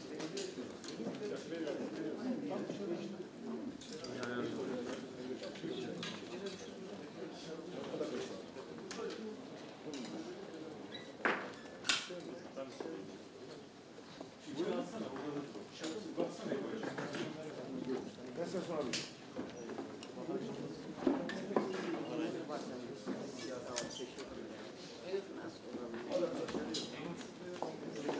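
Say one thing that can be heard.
A crowd of men and women murmur and talk at once in a room.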